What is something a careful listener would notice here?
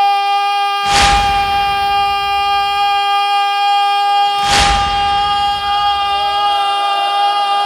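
A young man chants loudly and emotionally through a microphone.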